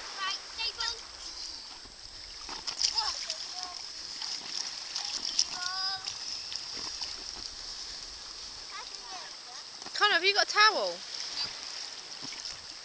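Water splashes around children wading in the shallows.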